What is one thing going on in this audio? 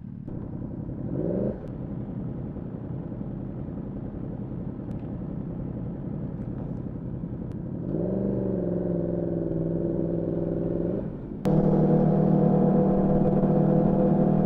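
A motorcycle engine revs and roars as it pulls away.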